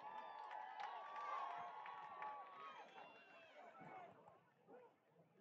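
A marching band plays brass and drums outdoors, fading toward the end.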